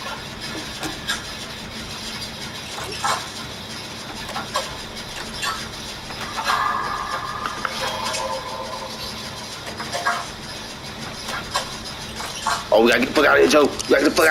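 Metal parts rattle and clink as a generator is worked on.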